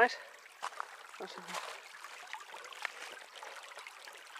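A stream trickles and splashes over rocks.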